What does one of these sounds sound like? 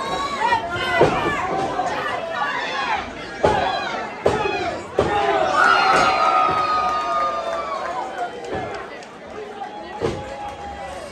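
Bodies slam hard onto a wrestling ring's mat.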